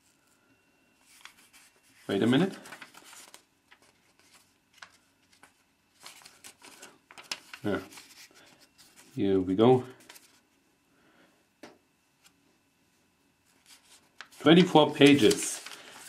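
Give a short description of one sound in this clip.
Paper pages rustle and flip as they are turned by hand.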